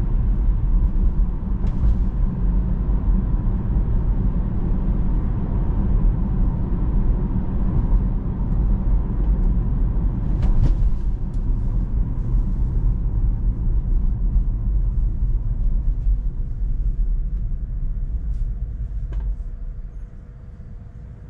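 A car's tyres rumble steadily on the road from inside the cabin, then fade as the car slows to a stop.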